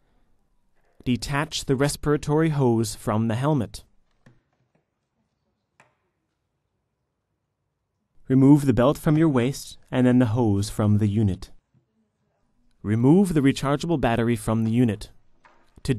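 A young man speaks calmly and clearly, close to a microphone.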